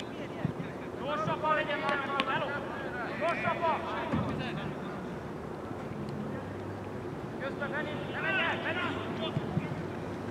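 Young men shout to each other across an open sports field.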